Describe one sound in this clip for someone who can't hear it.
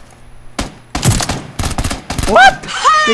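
A rifle fires several sharp shots.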